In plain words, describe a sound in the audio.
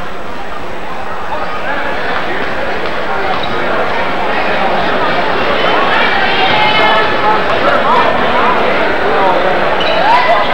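A crowd chatters and shouts in a large echoing gym.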